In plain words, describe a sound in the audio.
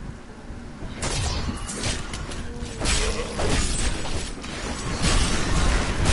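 Weapons clash and strike repeatedly in a hectic fight.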